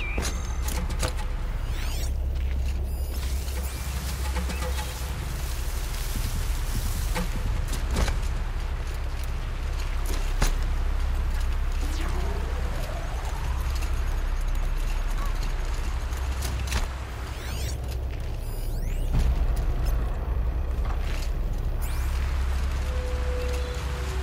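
Footsteps rustle softly through grass and over rock.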